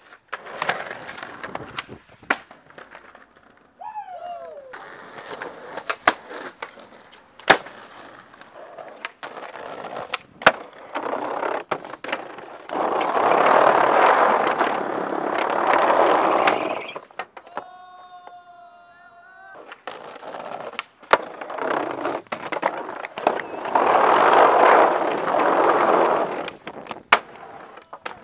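A skateboard's tail snaps and clacks against the ground.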